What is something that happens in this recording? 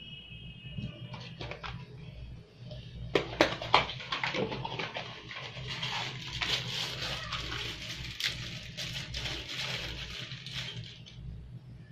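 Hands rustle and knock objects on a desk.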